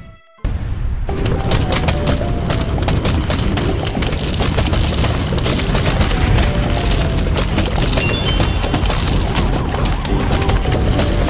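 Game projectiles pop and thud rapidly and continuously.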